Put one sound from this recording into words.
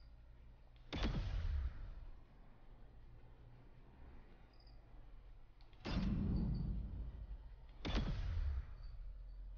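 A menu transition whooshes sharply a few times.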